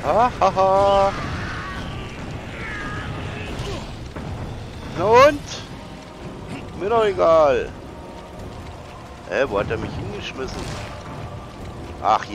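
A man talks excitedly into a close microphone.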